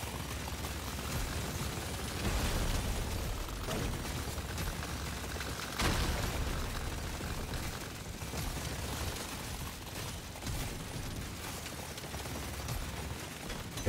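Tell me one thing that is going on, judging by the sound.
Rapid gunfire and explosions crackle and boom without pause.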